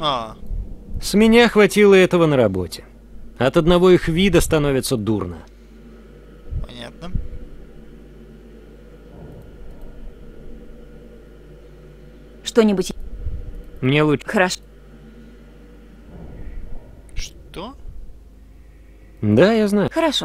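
A young man speaks calmly, heard close up.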